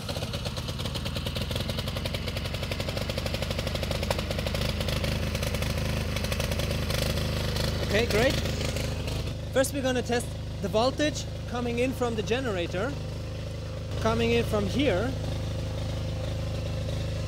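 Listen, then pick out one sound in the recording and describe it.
A portable generator engine runs with a steady, throbbing hum.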